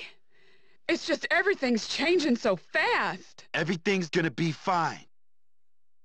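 A woman speaks softly.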